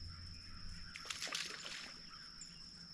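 A fishing line whizzes out from a reel as a man casts.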